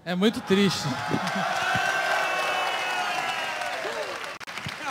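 An audience cheers and applauds in a large hall.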